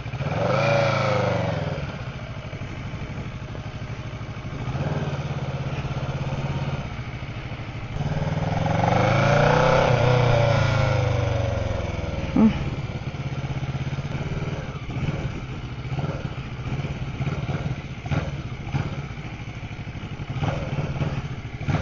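A motorcycle engine revs and roars, rising and falling in pitch.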